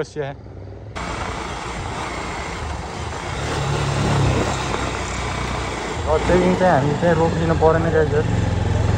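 Wind rushes past as a motorcycle rides along.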